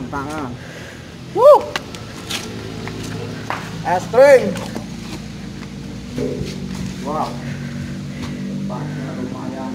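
Footsteps scuff on concrete steps.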